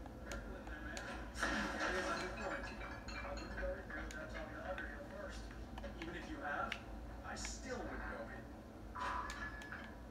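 Video game sounds play from a television, with bursts, clicks and swooshing effects.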